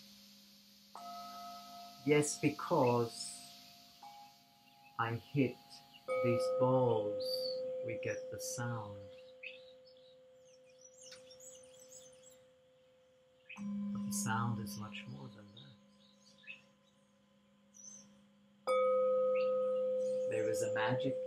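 A small metal bowl rings with a bright, lingering tone when struck.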